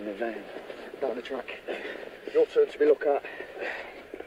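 A second man answers in a low voice.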